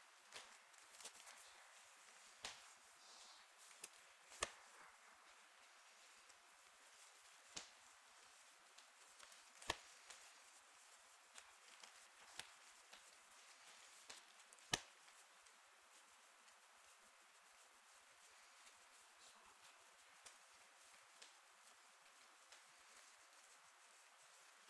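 Playing cards shuffle and riffle softly in hands.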